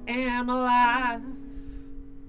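A man sings a held, wavering note into a microphone.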